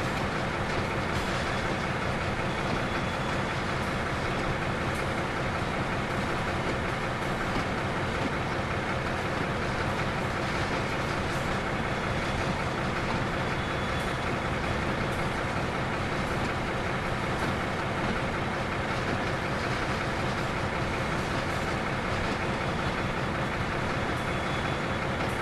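Train wheels roll along the rails.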